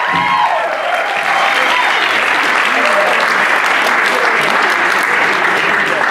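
A young woman sings into a microphone in front of the group.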